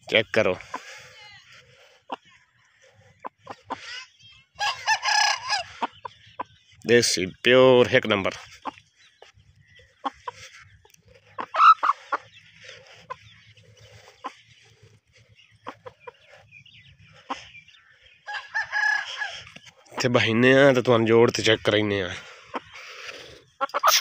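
A chicken squawks loudly close by.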